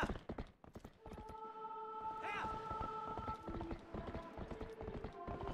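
Horse hooves clatter at a gallop.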